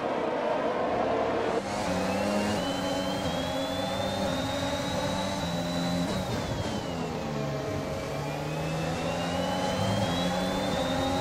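A racing car engine screams at high revs, its pitch climbing, dropping as it slows, then climbing again.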